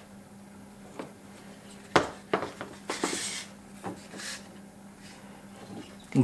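A rubber belt rustles and slaps as hands handle it.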